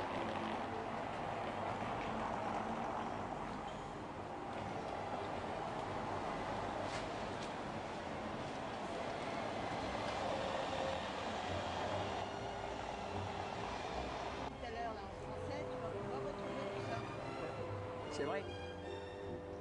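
An engine hums steadily from inside a moving car.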